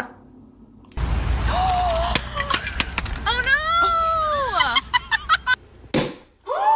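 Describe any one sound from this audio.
Young women laugh and shriek outdoors.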